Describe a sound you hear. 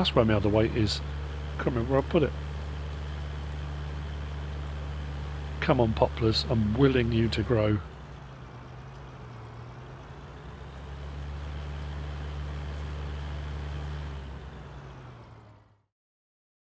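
A tractor engine hums steadily as a tractor drives along a track.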